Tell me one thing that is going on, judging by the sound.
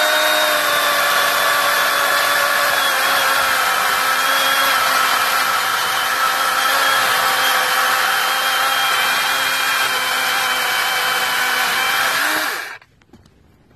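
A chainsaw runs loudly, cutting through a log.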